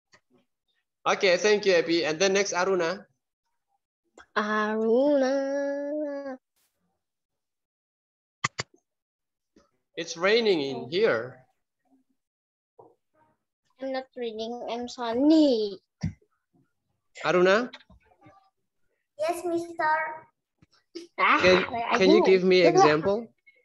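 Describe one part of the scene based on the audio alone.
Young people talk and laugh with animation over an online call.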